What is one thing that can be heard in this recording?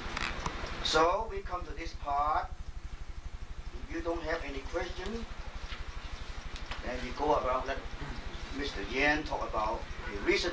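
An elderly man speaks calmly and quietly, close to a microphone.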